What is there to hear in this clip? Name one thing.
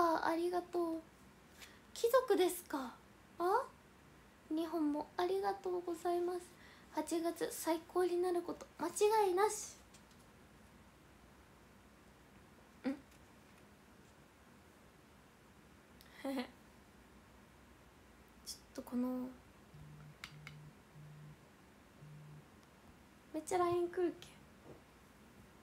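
A young woman talks close to a microphone with animation, in short bursts with pauses.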